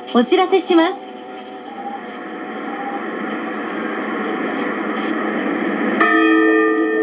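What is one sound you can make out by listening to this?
A radio receiver hisses with rising static through a small loudspeaker.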